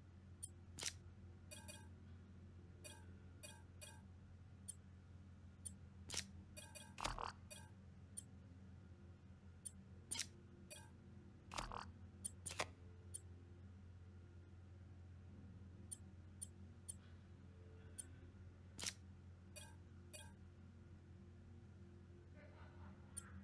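Short electronic clicks and chimes sound as puzzle pieces snap into place.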